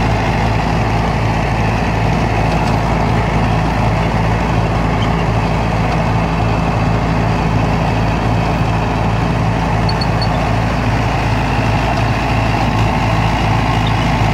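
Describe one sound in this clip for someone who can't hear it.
A tractor engine runs with a steady low rumble close by.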